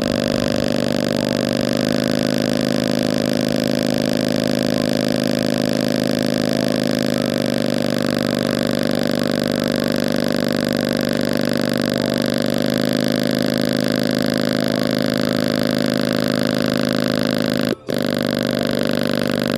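A small loudspeaker plays a loud, buzzing chord that changes every few seconds.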